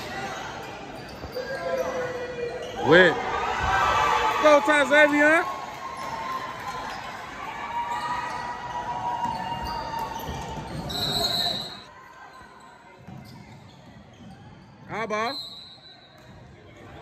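A crowd of spectators murmurs and cheers in an echoing gym.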